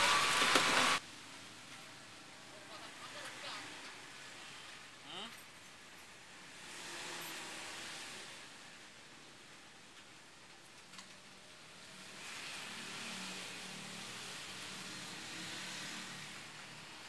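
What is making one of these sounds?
Paper rustles softly under hands.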